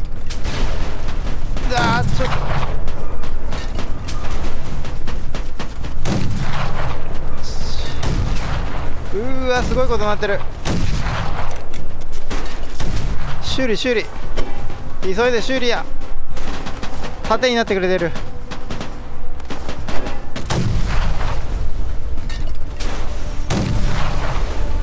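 Loud explosions boom and rumble close by.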